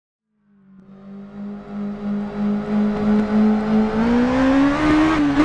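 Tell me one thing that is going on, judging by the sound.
A motorcycle engine approaches from afar, its drone rising in pitch as it nears.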